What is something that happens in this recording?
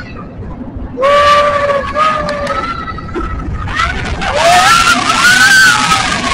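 Riders in front shout and cry out loudly.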